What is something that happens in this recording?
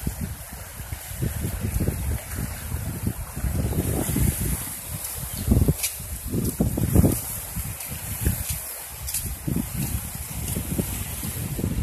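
Wind buffets loudly in gusts outdoors.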